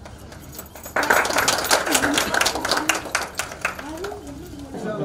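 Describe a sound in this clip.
People clap their hands together.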